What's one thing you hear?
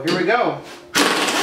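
An air-powered impact wrench whirs in short bursts.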